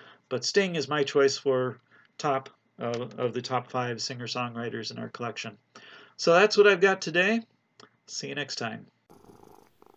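An older man talks calmly and closely into a microphone.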